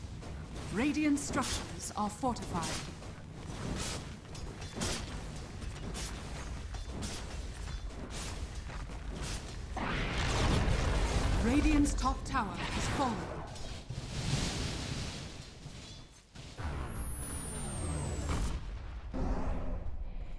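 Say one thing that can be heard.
Fantasy battle sound effects clash, whoosh and crackle as spells are cast.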